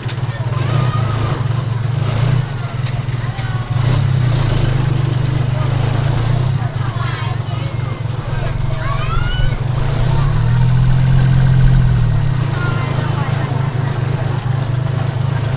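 A small motor engine putters steadily up close.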